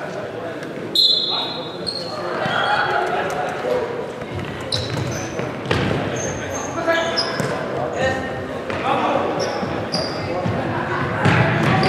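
Shoes squeak sharply on a hard floor in a large echoing hall.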